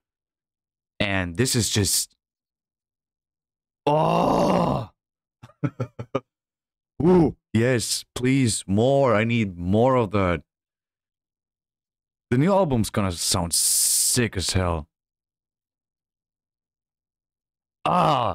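A young man speaks with animation into a close microphone, in bursts with pauses.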